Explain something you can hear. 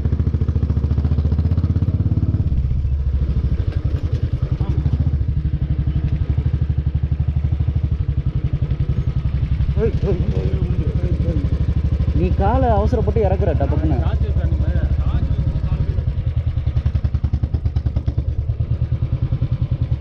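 A motorcycle engine thumps steadily at low speed, close by.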